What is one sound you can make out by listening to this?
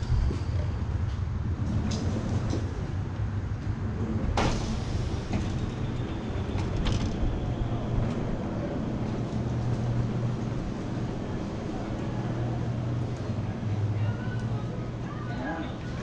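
An electric mobility scooter motor hums steadily as it rolls along.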